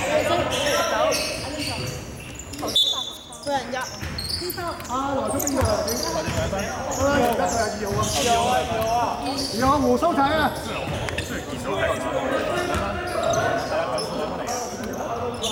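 A basketball thumps as it bounces on the floor.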